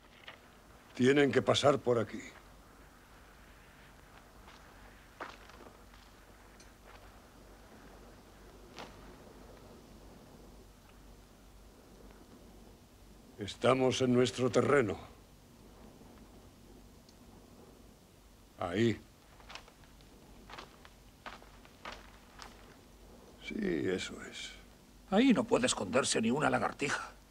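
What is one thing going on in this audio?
An elderly man speaks loudly and firmly, close by.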